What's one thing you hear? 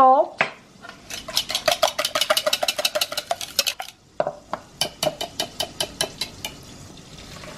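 A wire whisk beats rapidly against the inside of a bowl.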